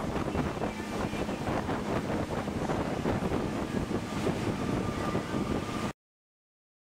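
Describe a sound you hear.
Outboard motors roar steadily as a speedboat races along.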